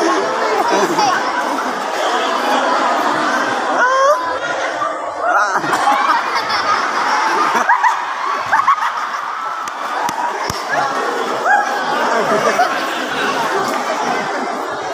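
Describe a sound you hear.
A large crowd of children chatters and shouts loudly in an echoing hall.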